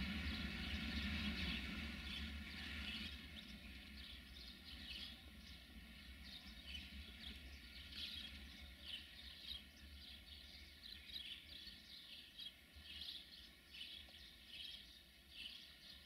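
A freight train rumbles steadily along the tracks, slowly fading.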